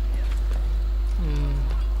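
Footsteps patter on wooden boards.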